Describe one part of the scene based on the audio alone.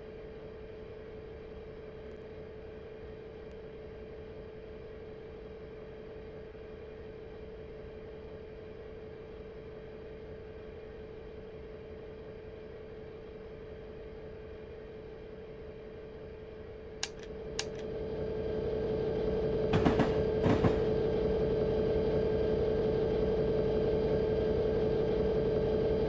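A diesel locomotive engine drones steadily, then swells louder.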